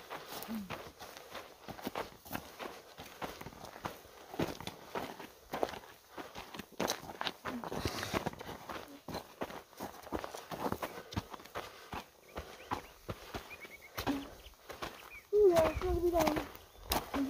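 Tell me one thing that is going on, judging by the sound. Footsteps crunch on dry grass and gravel.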